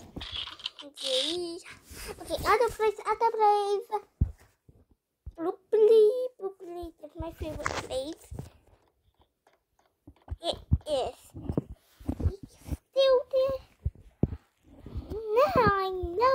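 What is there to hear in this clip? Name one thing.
A young girl talks excitedly and shouts close to a microphone.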